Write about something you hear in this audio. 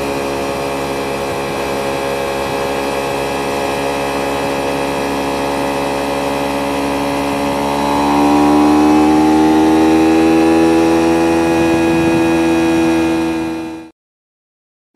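A motorcycle engine drones steadily and rises in pitch as it speeds up.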